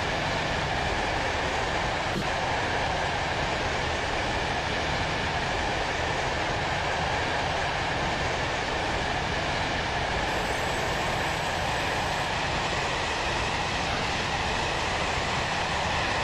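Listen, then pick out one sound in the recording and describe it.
A train rumbles and hums steadily along the track.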